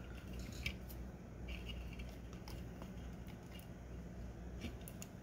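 Plastic parts click and tap against each other as hands handle them.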